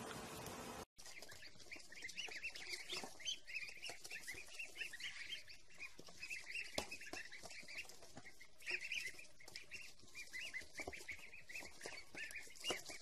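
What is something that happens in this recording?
Many chicks cheep busily and shrilly close by.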